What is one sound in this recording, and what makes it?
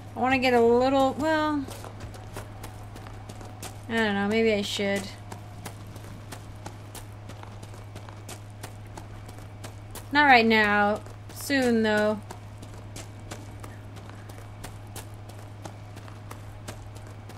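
Quick footsteps run steadily over a dirt path.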